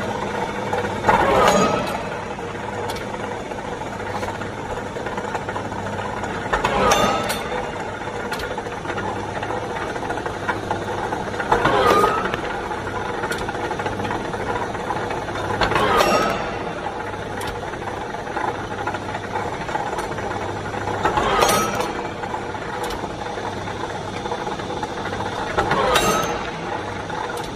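A machine bends metal bar with a grinding clunk every few seconds.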